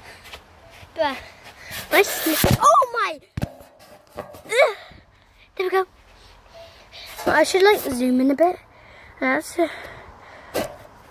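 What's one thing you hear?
A young boy talks with animation close to the microphone.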